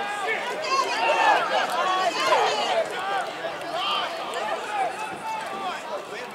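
A crowd of spectators cheers and shouts nearby, outdoors.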